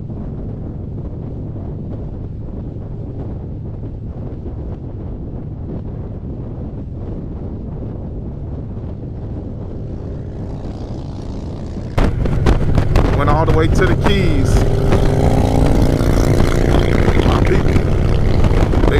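Wind rushes and buffets loudly against the microphone.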